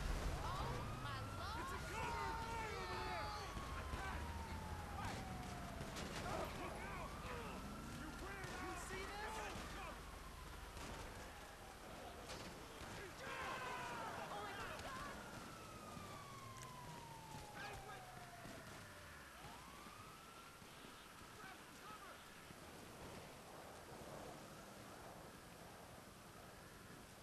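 A siren wails nearby, rising and falling in long slow sweeps.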